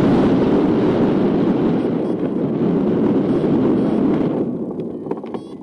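Wind rushes loudly past the microphone, then dies away.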